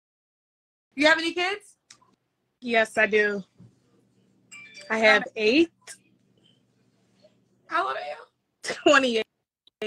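A young woman talks with animation over an online call.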